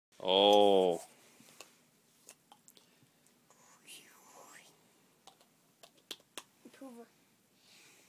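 A young girl speaks softly close by.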